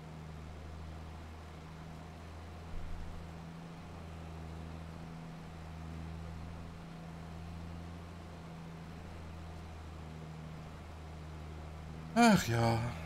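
A tractor engine hums steadily at a low pitch.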